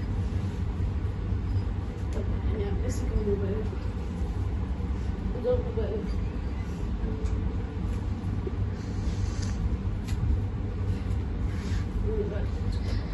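A woman speaks softly into a microphone.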